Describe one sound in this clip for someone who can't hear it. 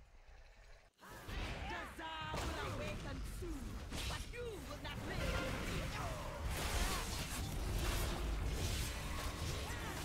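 Spells crackle and weapons clash in a noisy fight.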